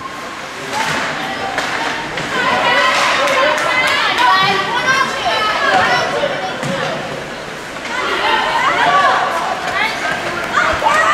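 Spectators shout and cheer in a large echoing rink.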